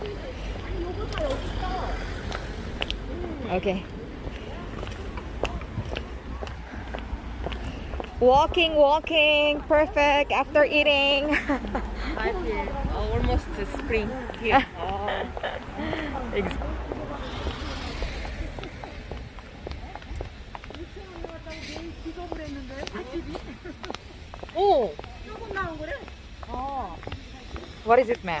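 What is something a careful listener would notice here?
Women talk quietly nearby.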